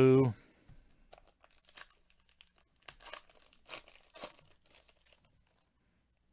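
Plastic card wrappers crinkle and rustle.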